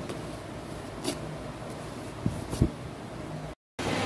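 A wax strip rips sharply off skin.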